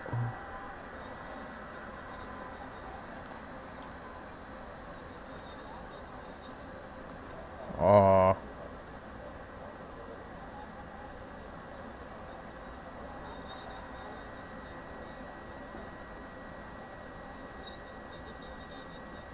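A crowd murmurs steadily in the background.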